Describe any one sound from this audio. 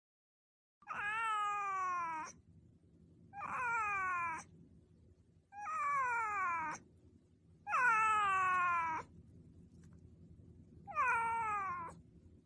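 A cat meows loudly several times, in long falling cries.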